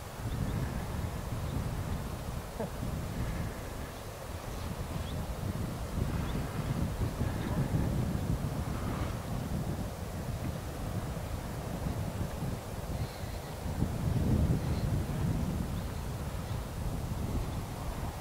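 Wind gusts and rumbles across open ground outdoors.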